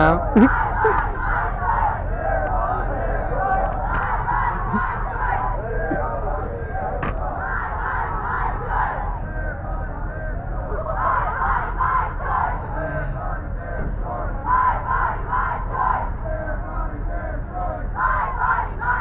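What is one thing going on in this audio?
A large crowd of young men and women chants and shouts loudly outdoors.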